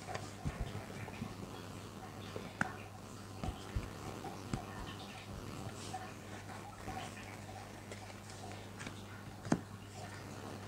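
Playing cards riffle and slap softly as they are shuffled.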